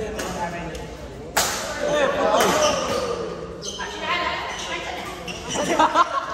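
Young men talk and call out in an echoing hall.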